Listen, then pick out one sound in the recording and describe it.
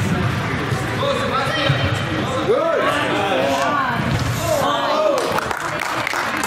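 Young players shout to each other across a large echoing hall.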